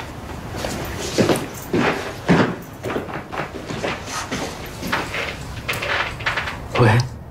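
A young man speaks quietly into a phone.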